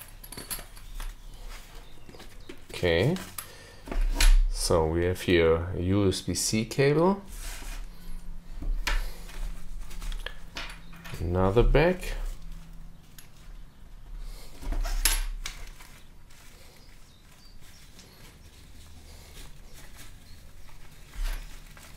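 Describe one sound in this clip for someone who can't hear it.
A soft fabric case rustles and scrapes as it is handled.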